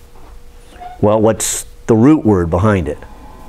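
An older man speaks with animation in an echoing room.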